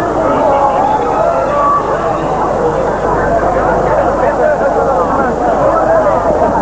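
A crowd of people chatters and calls out loudly outdoors.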